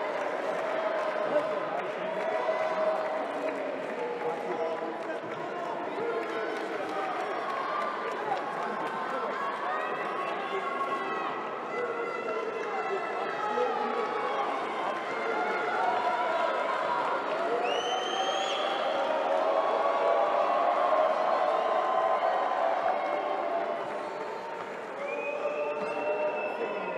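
A large crowd cheers and chants loudly in a big echoing hall.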